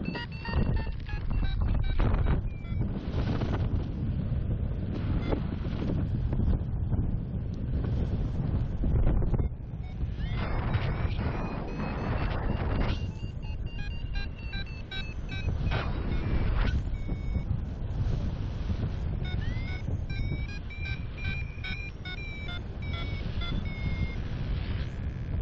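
Wind rushes loudly and buffets steadily, outdoors at height.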